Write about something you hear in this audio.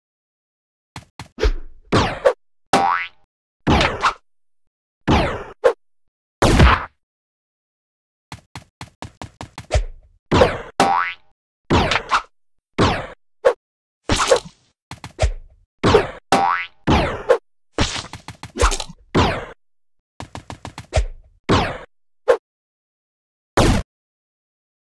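A game character jumps with short, punchy thuds, over and over.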